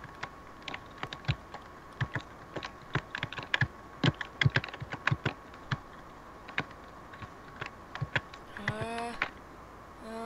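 Quick footsteps tap and crunch on ice.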